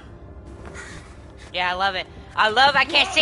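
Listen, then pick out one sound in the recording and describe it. A man gasps in terror.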